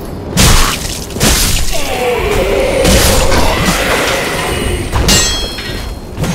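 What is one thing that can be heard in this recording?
Metal weapons clash and strike armour in a fight.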